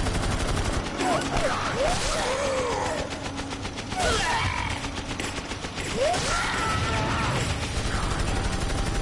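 Men shout and groan in pain.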